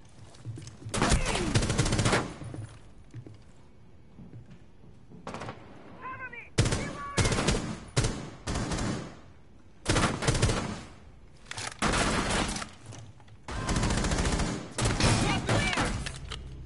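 Rifle gunshots fire in rapid, loud bursts.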